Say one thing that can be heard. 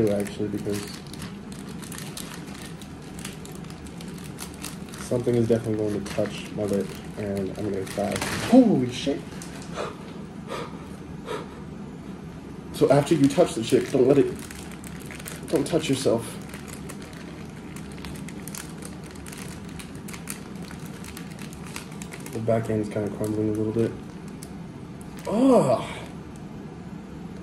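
Plastic bags crinkle and rustle in a man's hands.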